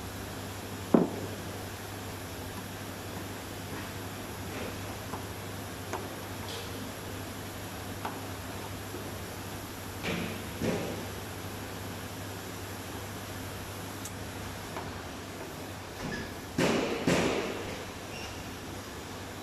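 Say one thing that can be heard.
A metal spatula scrapes and taps on a metal plate.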